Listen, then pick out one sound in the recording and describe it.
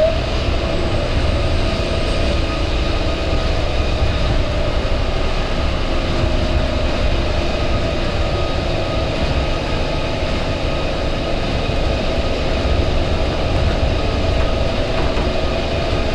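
A train rumbles and hums steadily as it rolls along an elevated track.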